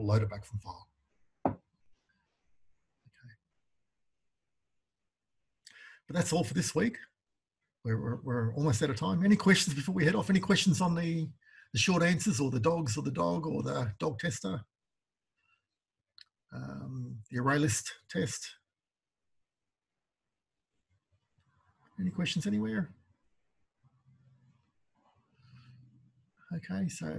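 An older man talks calmly into a microphone, with pauses.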